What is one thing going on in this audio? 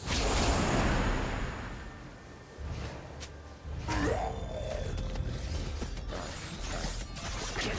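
Game spells whoosh and crackle in a fight.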